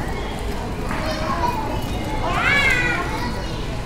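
Footsteps tap on stone paving close by.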